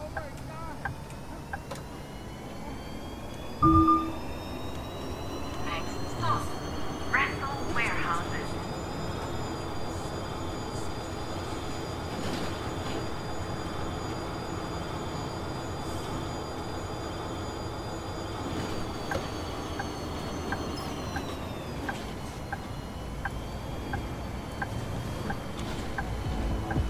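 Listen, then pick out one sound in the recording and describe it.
A bus engine hums steadily as the bus drives along, its pitch rising and then dropping as it slows.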